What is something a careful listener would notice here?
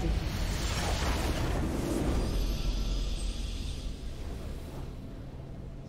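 A game's victory fanfare swells with a whooshing burst and then fades.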